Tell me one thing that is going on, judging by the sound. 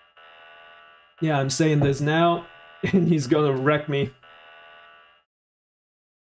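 A warning alarm blares steadily.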